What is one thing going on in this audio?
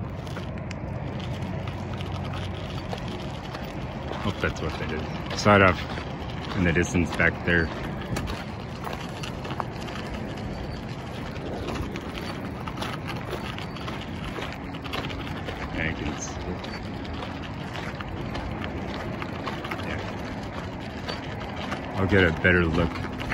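Footsteps crunch steadily on loose gravel.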